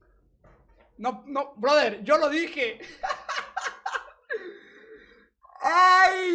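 A young man talks animatedly into a microphone, close by.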